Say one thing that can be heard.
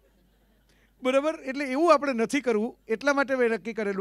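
A middle-aged man speaks with animation into a microphone through loudspeakers.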